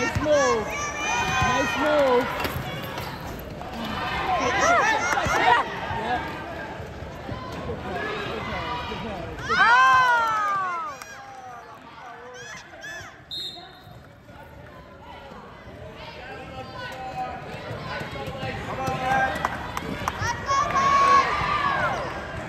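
Young players shout and call out across a large echoing gym.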